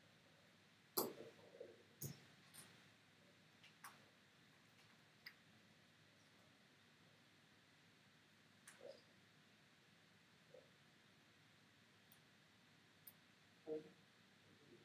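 Short electronic zaps and clicks sound one after another.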